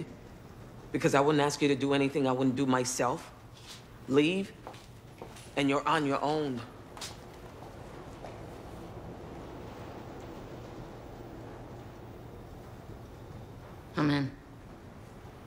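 Another woman answers in a firm, low voice.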